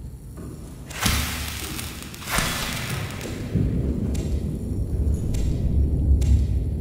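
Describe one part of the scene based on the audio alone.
A blade slices through leafy plants with quick swishes.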